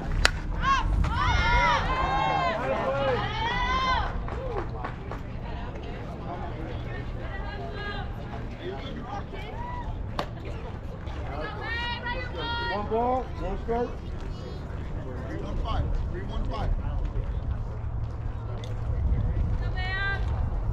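Young women shout and cheer from a distance outdoors.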